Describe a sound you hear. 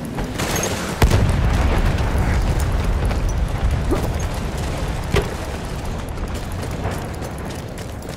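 Rifle shots crack.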